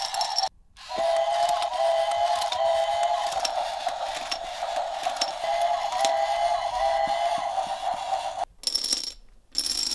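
Plastic dominoes click as they drop onto the floor.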